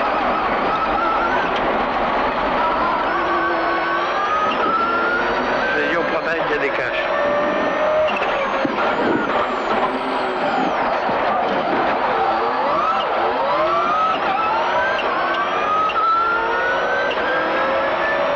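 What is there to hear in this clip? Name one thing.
A rally car engine roars and revs up and down through the gears.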